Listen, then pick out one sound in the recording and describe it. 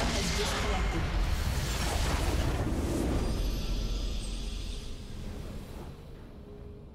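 A large crystal explodes with a deep, rumbling blast that slowly fades.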